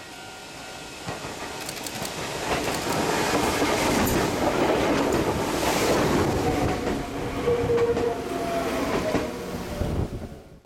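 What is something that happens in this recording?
A tram approaches and rumbles loudly past close by.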